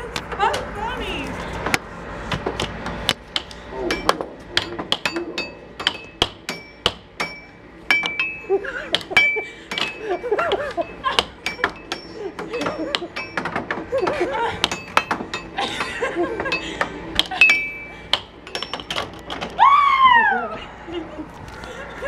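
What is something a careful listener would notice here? A plastic puck clacks sharply against mallets and the table's rails.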